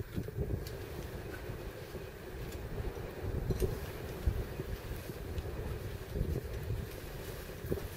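Metal clips clink against a steel cable as a climber moves along a rock face.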